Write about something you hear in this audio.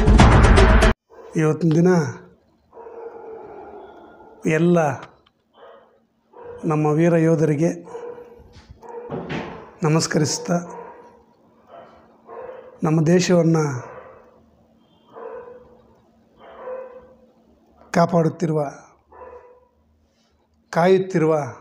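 A middle-aged man speaks calmly into a close microphone.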